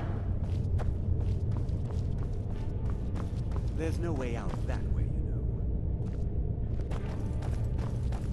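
Footsteps scuff on a stone floor.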